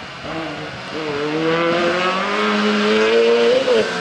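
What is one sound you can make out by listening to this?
Another four-cylinder race hatchback engine approaches, revving hard.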